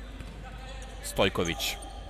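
A ball is kicked hard in an echoing indoor hall.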